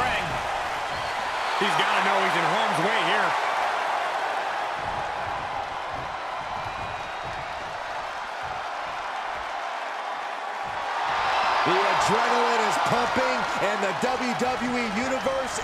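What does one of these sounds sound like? A large crowd cheers and roars in a big arena, swelling louder at times.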